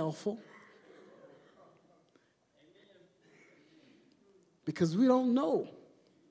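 An elderly man preaches with animation through a microphone, in a large echoing room.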